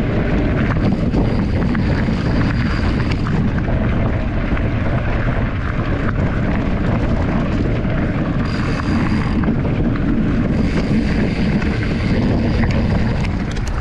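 Wind buffets loudly against a microphone.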